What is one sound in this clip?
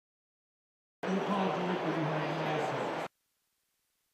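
A man speaks to an audience through a loudspeaker.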